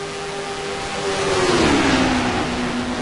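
A car engine drones past with a falling pitch.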